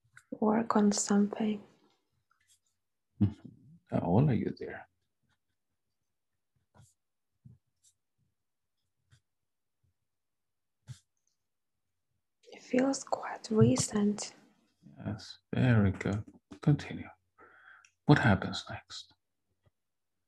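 A young woman speaks softly and slowly, close by.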